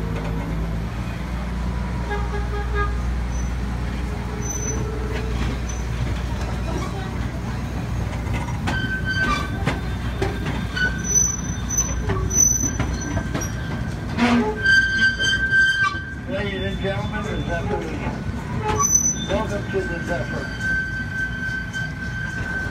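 A ride vehicle rumbles steadily along its track.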